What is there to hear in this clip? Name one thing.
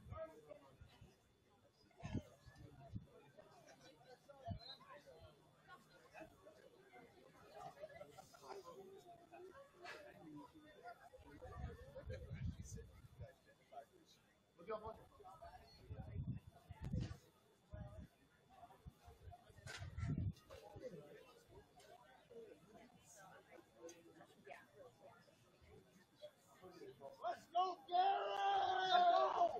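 A crowd murmurs and chatters in the distance outdoors.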